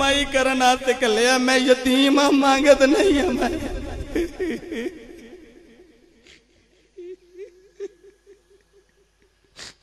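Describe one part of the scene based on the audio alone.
A man sings a drawn-out, wavering chant into a microphone, slowly fading away.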